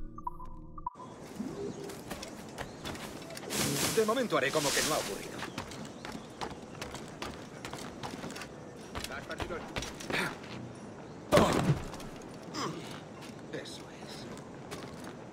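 Footsteps and scrambling hands clatter while someone climbs.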